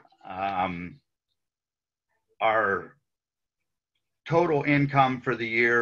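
An elderly man speaks calmly over an online call, pausing between phrases.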